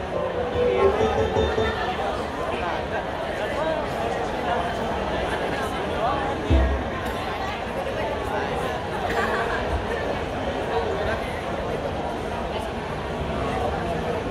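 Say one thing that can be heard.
A small string ensemble plays through loudspeakers in a large echoing hall.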